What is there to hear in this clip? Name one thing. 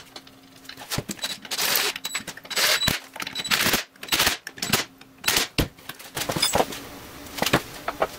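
A ratchet wrench clicks as bolts are tightened.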